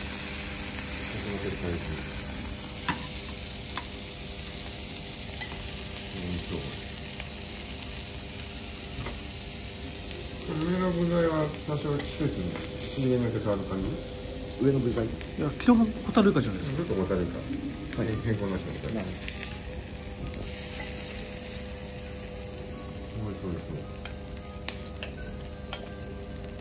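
Metal spatulas scrape and clink against a griddle and plates.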